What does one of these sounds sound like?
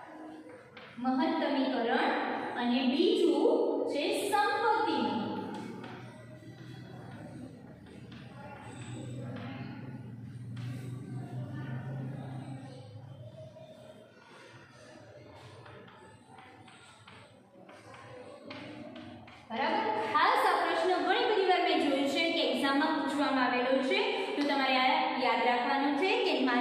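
A woman speaks clearly, as if teaching.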